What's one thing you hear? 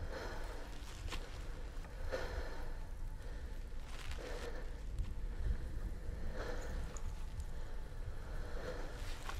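Embers crackle faintly on the ground.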